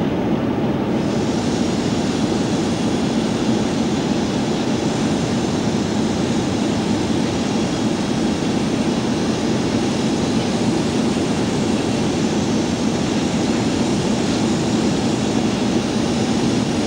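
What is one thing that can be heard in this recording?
A diesel shunting engine rumbles loudly as it rolls slowly past.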